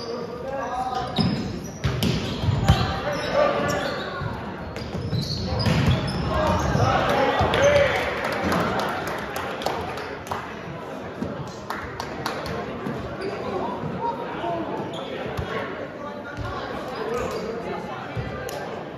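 Sneakers squeak on a hardwood floor.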